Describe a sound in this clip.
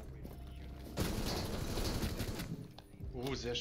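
Gunshots fire in a rapid burst close by.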